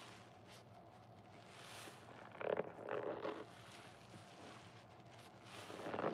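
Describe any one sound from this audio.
Soapy sponges squelch and squish as they are squeezed together.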